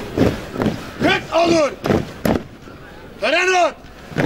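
A group of young men shout together in unison outdoors.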